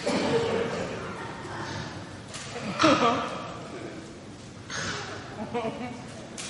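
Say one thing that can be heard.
A woman speaks with animation in a large room.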